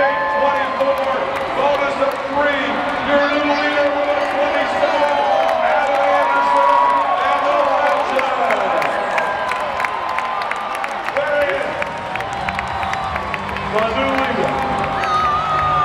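A large crowd cheers in a big echoing arena.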